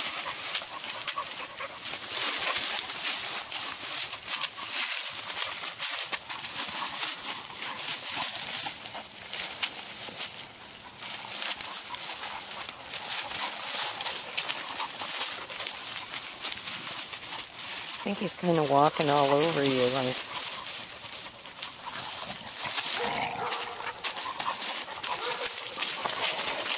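Dry leaves rustle and crunch as dogs scramble and wrestle on the ground.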